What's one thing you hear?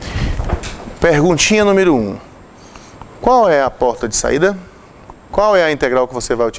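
A man speaks calmly into a clip-on microphone, in short phrases with pauses.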